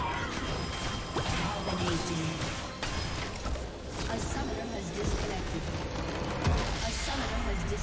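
Spell effects crackle and blast in a fierce fight.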